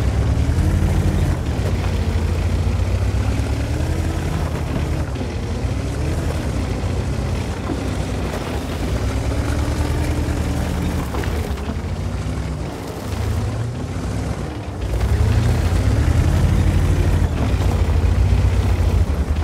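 A tank engine rumbles and roars, revving up and down as the tank drives.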